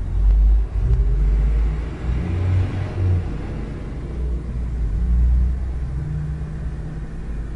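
A minibus drives past close by.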